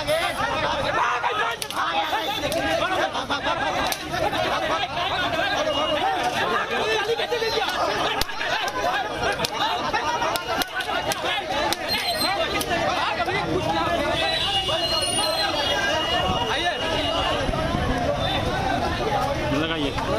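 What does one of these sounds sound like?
A crowd of men shout and clamour close by.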